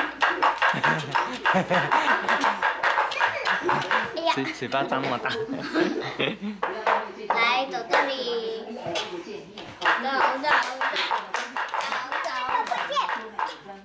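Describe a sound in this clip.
Wooden wheels of a baby walker roll across a tiled floor.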